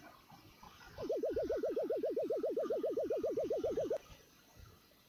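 A quick series of high electronic blips chatters rapidly.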